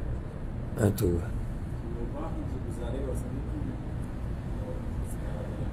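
A man speaks with animation through a microphone in a slightly echoing room.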